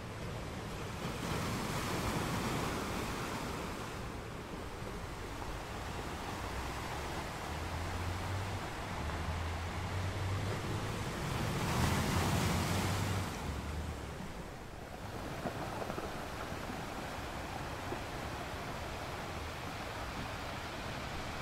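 Ocean waves crash and roar against rocks, swelling and easing in surges.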